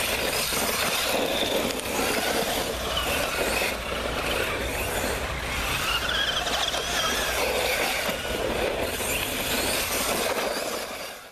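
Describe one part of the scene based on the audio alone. Electric motors of small toy cars whine as the cars speed around.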